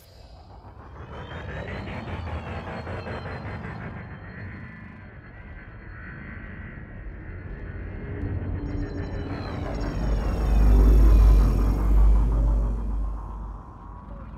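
A spacecraft engine hums and rumbles steadily, swelling into a deep roar.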